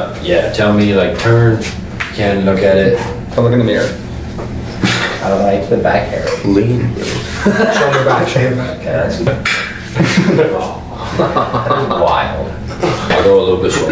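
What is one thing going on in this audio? Another young man laughs and talks nearby.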